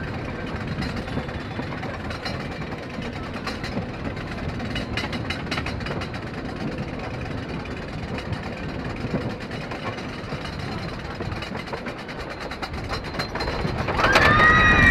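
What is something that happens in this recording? A roller coaster chain lift clanks and rattles steadily.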